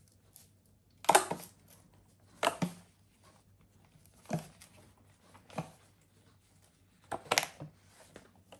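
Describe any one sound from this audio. Hands rustle and squeeze soft silicone moulds in bursts.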